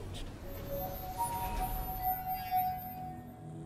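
A device whistles a short tune.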